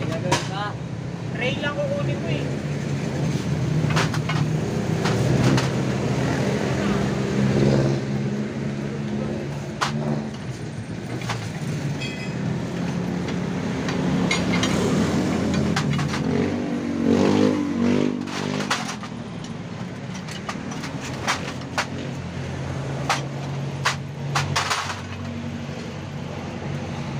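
A scooter engine idles close by with a steady low rumble.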